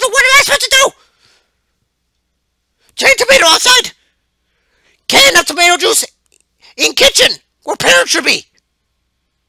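A young man speaks with animation into a headset microphone, close and loud.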